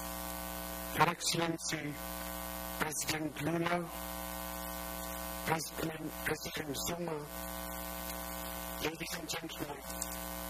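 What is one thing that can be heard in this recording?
A man speaks quietly close by, in short bursts.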